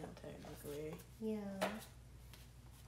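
A child talks excitedly close by.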